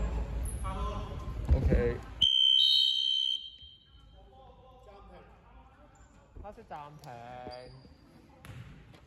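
Young men call out to each other across a large echoing hall.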